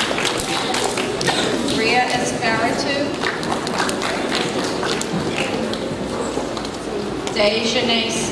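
A woman reads out names over a loudspeaker in a large echoing hall.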